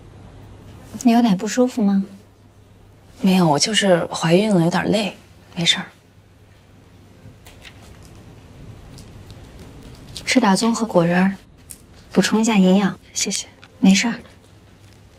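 A young woman asks a question gently.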